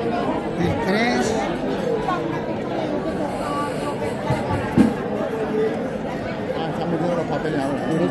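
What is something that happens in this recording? A crowd of people chatter all around.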